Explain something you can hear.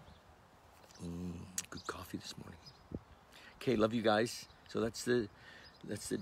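An elderly man speaks calmly and close to the microphone.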